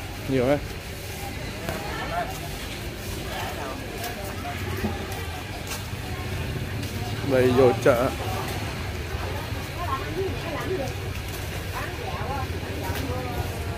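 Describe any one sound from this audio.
Voices of men and women chatter nearby, outdoors.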